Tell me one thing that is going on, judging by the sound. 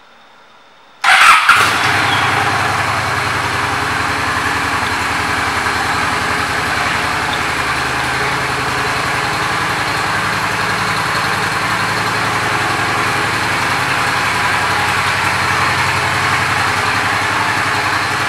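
A motorcycle engine idles with a steady, low rumble.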